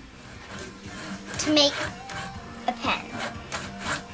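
A hand saw rasps back and forth through wood.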